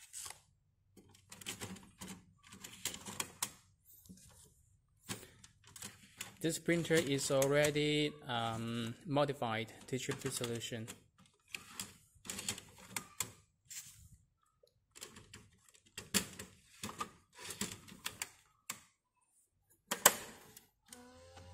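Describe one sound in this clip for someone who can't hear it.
Plastic ink cartridges click into slots in an inkjet printer.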